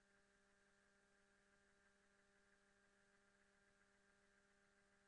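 A spaceship engine hums steadily and very faintly.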